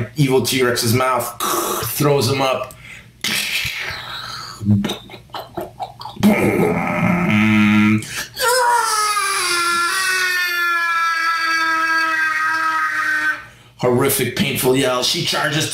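A gruff male voice speaks with animation.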